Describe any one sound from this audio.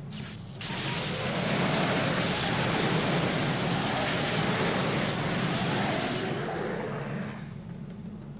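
Magic spells crackle and burst loudly during a fight.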